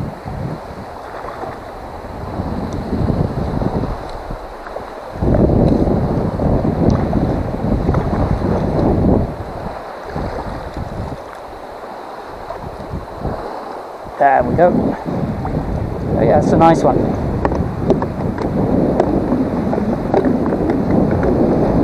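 Water laps and ripples close by.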